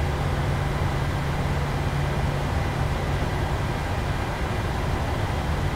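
Jet engines hum with a steady low rumble as an airliner taxis.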